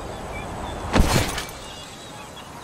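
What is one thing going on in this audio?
A glass ball smashes and shatters on the ground.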